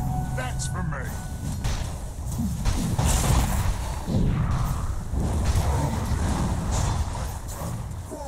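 Magical spells whoosh and crackle in a clashing battle.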